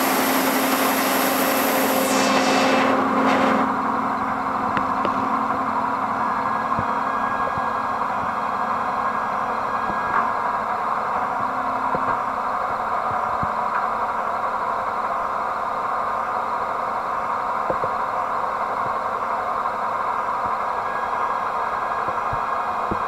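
A heavy machine hums and rumbles steadily.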